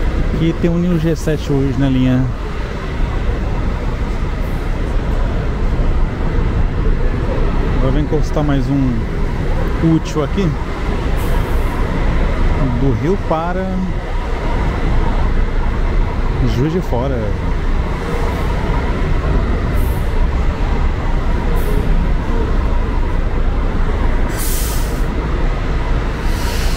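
A bus engine rumbles low and steady in an echoing hall.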